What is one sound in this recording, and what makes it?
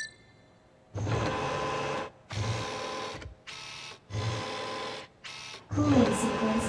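A robotic arm whirs and hums in short bursts as it moves.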